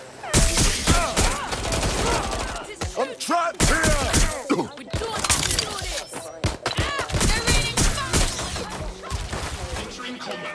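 Gunshots crack rapidly in bursts.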